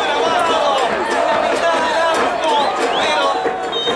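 A large crowd chants and cheers outdoors.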